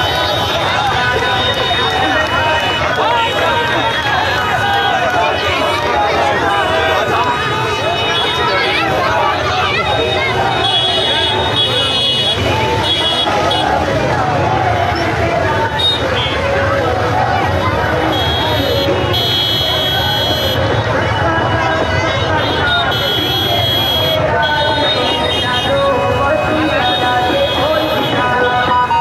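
A large crowd chants and shouts loudly outdoors.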